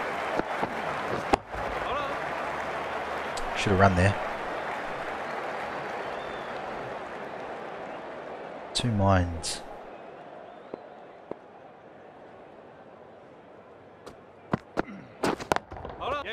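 A cricket bat knocks a ball with a sharp crack.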